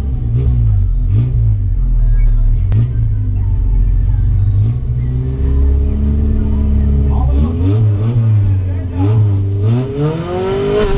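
A race car engine idles roughly and revs in short bursts close by.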